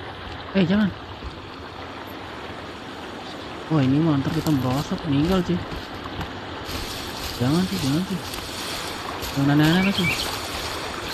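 A young man talks casually into a microphone, close up.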